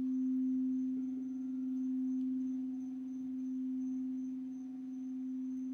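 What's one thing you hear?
A crystal bowl is struck, giving a brief bright chime.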